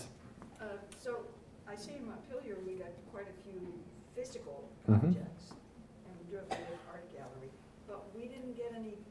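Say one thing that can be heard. A man lectures calmly through a microphone in a room with a slight echo.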